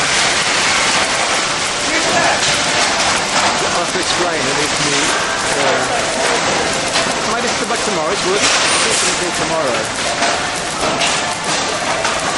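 A packaging machine hums and clatters steadily.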